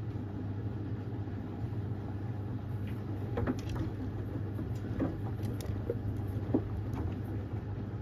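Clothes tumble and thump softly inside a washing machine drum.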